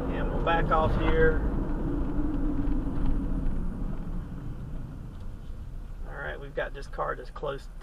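Tyres roll on asphalt as a car drives and slows to a stop.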